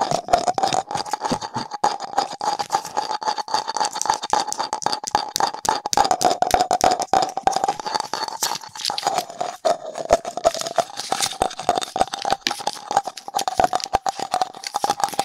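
A small tool scrapes and taps on a plastic pumpkin.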